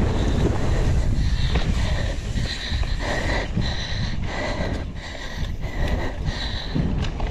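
A bike's chain and frame rattle over bumps.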